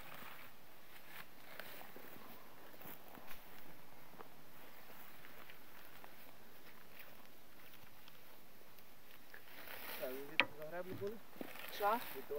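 A wooden rake rustles and scrapes through cut grass.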